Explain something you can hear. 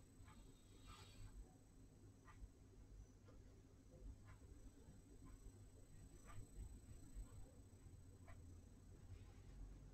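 A brush taps and brushes lightly on paper.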